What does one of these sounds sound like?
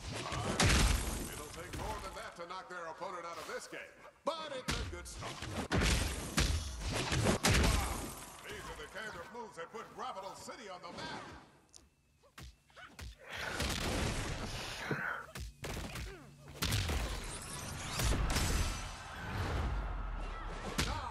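Cartoonish punches and blows thud and crack in a fast fight.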